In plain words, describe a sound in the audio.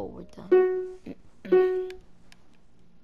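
A bright electronic chime sounds twice in quick succession.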